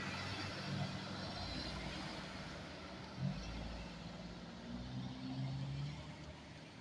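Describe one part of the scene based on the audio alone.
Tyres hiss on the road as a car drives past.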